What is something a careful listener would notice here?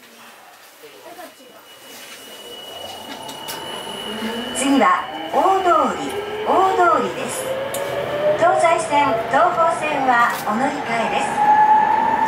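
A train's motor whines and rises steadily in pitch as the train speeds up.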